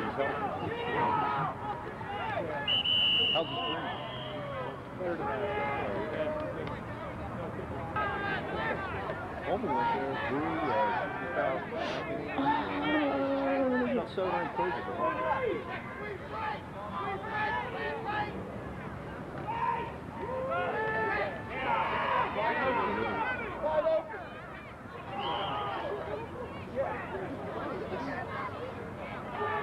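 A crowd of people chatter and shout outdoors.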